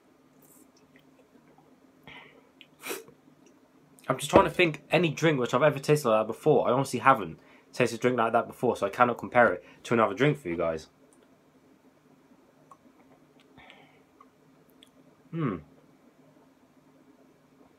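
A young man sips a drink and swallows.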